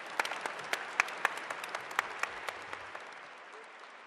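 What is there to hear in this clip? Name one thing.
A woman claps her hands nearby.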